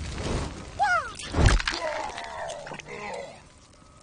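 Fire bursts with a whoosh.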